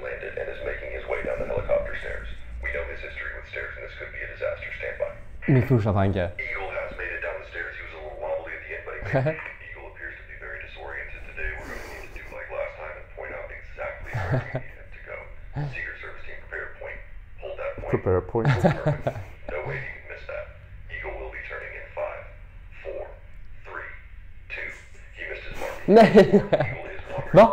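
A man speaks with animation through a phone's loudspeaker.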